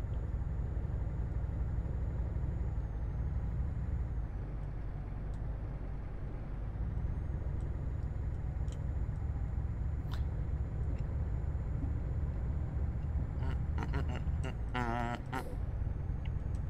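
A truck engine hums with a low, steady drone.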